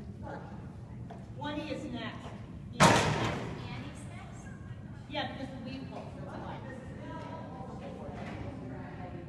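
A woman calls out commands to a dog in a large echoing hall.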